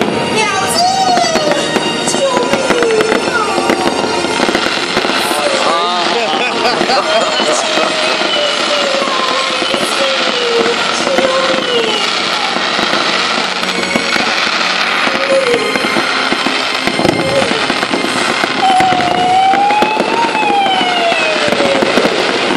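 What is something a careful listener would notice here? Fireworks whistle with shrill, sliding tones.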